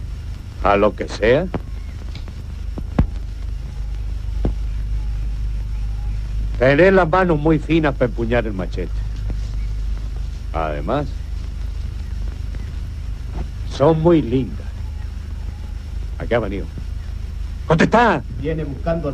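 A man speaks in short phrases, close by.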